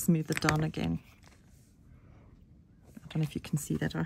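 Clear plastic sheet crinkles as it is handled.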